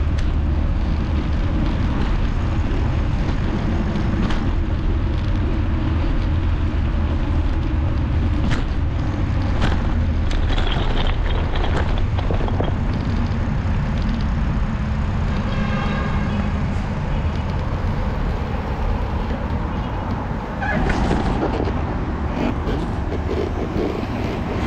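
Wind rumbles strongly against the microphone outdoors.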